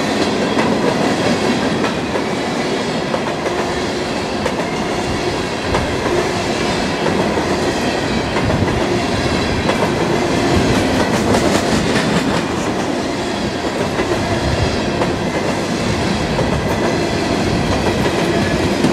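Steel wheels clack rhythmically over rail joints.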